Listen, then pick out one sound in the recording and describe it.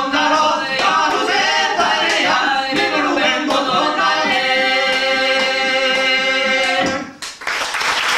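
A hurdy-gurdy plays a droning tune.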